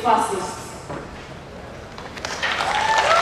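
A woman speaks into a microphone over loudspeakers, calmly and clearly.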